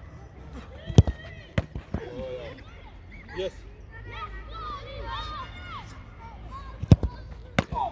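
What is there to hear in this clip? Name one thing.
A football is struck with sharp thumps.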